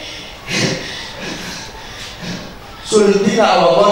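A young woman moans and speaks into a microphone.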